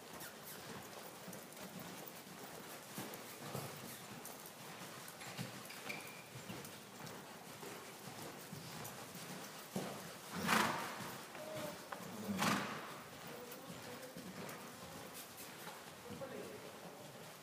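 A horse's hooves thud softly on sand in a large echoing hall.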